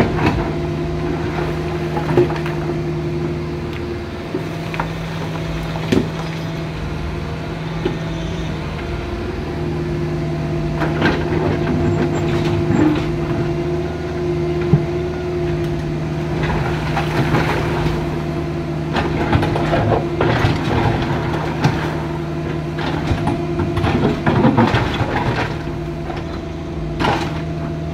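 Rocks knock and scrape against an excavator bucket.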